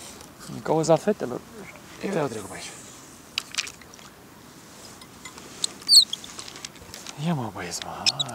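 Water laps gently against a small boat.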